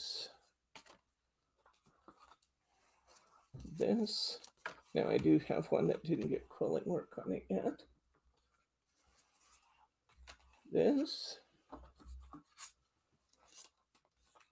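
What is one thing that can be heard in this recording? Paper cards rustle and slide as they are handled.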